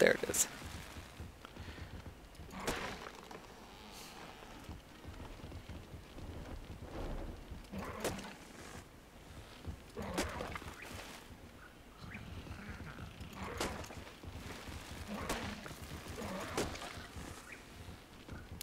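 A beaver gnaws at wood with sharp, repeated thuds.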